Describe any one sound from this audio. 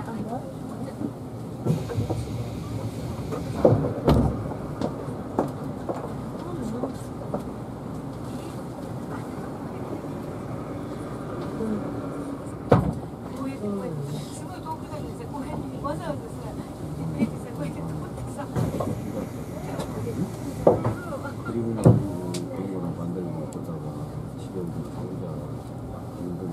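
A train idles with a low, steady hum.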